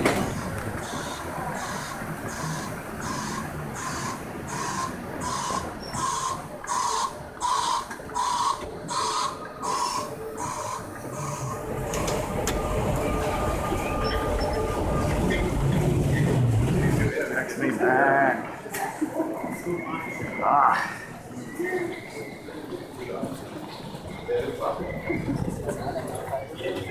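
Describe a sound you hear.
People murmur and chatter in a large echoing hall.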